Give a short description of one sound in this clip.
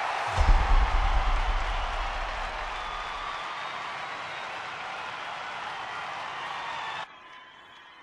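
A large crowd cheers and applauds loudly, then quickly falls quiet.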